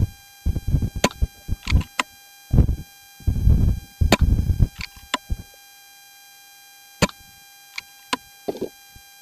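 A rifle fires sharp shots outdoors.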